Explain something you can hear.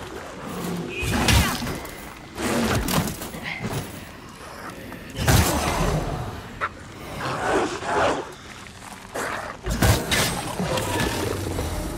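Weapons clash and strike in a fierce fight.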